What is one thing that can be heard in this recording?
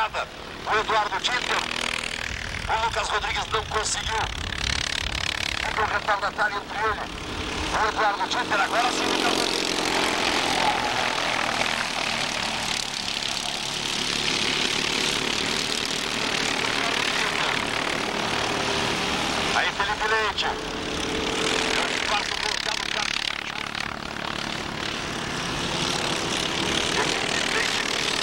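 Small kart engines buzz and whine loudly as karts race past.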